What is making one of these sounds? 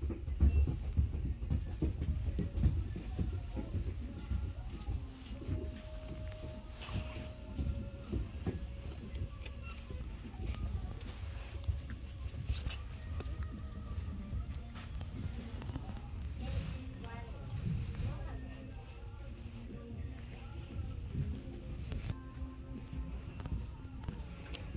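Fabric oven mitts in plastic packaging rustle as a hand moves them on their hooks.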